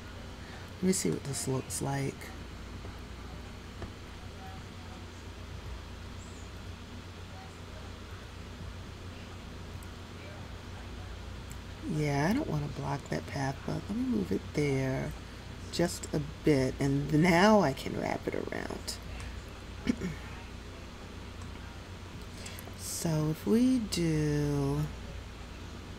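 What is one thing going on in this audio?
A young woman talks casually into a headset microphone, close up.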